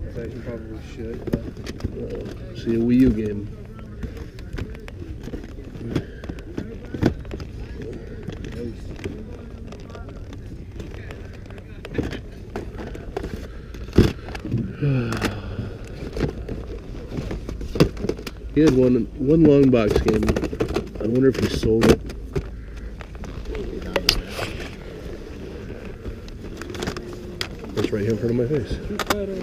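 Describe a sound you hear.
Plastic game cases clack and rattle as a hand flips through them.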